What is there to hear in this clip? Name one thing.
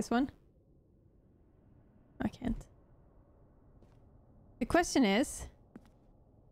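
A young woman speaks briefly into a close microphone, in short bursts.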